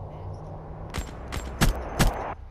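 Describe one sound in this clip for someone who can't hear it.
A rifle fires several sharp shots.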